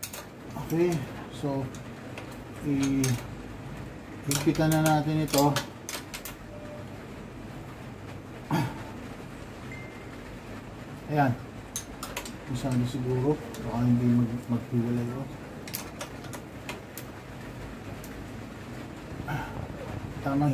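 A metal wrench clicks and scrapes against a bolt.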